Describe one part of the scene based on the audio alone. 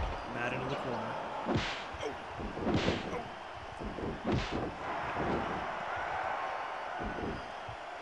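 Punches land with sharp smacks.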